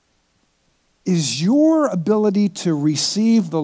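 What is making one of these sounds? A middle-aged man speaks loudly and with animation into a microphone.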